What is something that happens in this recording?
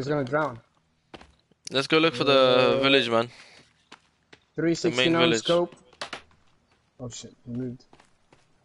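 Footsteps crunch through grass and dirt.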